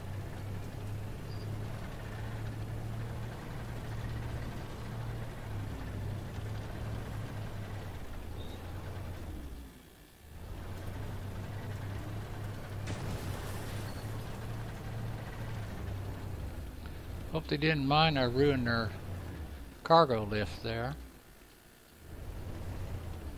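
A heavy armoured vehicle's engine rumbles steadily.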